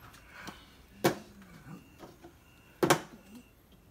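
Plastic cups knock sharply on a table.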